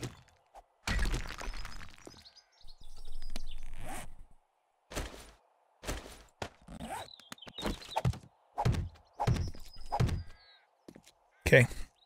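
A pickaxe knocks repeatedly against rock.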